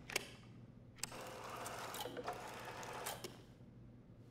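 A jukebox mechanism whirs as it swings a record into place.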